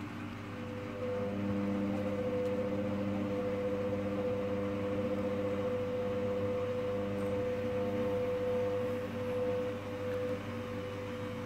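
A washing machine motor whines louder as the drum speeds up.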